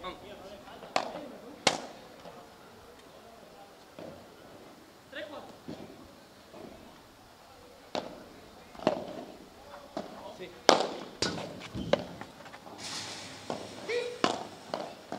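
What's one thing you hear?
Padel rackets strike a ball with sharp pops outdoors.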